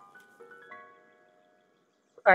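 A bright magical chime rings out in layered notes and fades.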